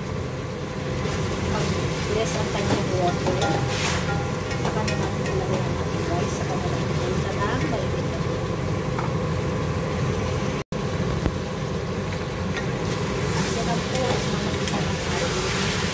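A wooden spoon scrapes and stirs meat in a metal pot.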